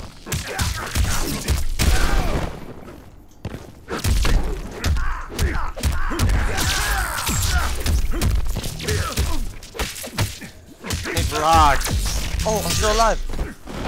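Punches and blasts from a fighting game thud and crackle.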